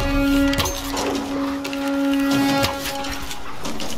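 A bowstring snaps as an arrow flies.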